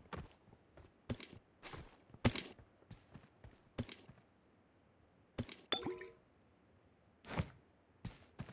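Items clatter as gear is picked up and dropped in quick clicks.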